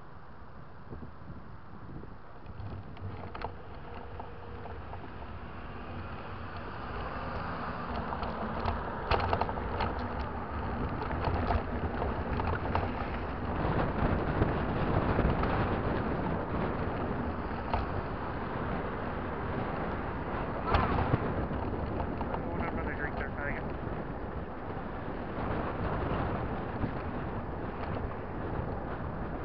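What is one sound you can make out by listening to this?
Wind rushes loudly past, growing stronger over time.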